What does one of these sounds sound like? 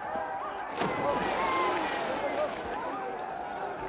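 Water splashes as men fall into a river.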